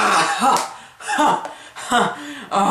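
A teenage boy laughs close by.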